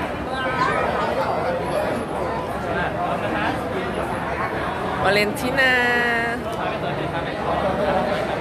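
A crowd of people chatter and call out nearby.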